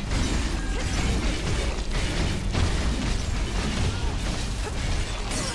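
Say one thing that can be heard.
A huge monster roars and growls.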